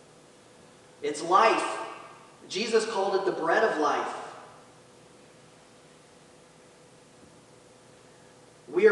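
A man speaks calmly through a microphone in a large echoing hall.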